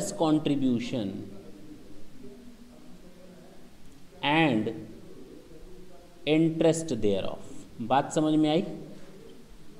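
A man speaks in bursts, calmly explaining, close by.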